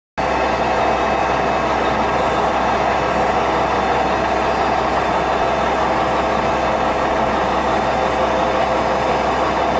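A milling cutter grinds steadily across a metal surface with a loud, even whine.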